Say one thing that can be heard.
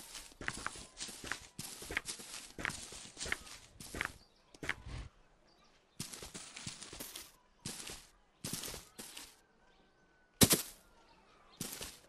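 Footsteps brush quickly through grass.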